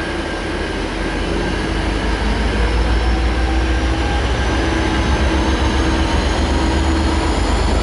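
A diesel-electric locomotive's engine throbs as it pulls away.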